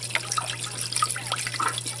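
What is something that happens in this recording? Water pours into a metal pot.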